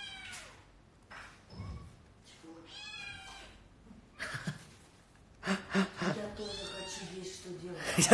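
Cats meow close by.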